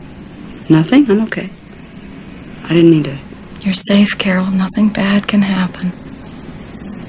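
A middle-aged woman speaks calmly and quietly.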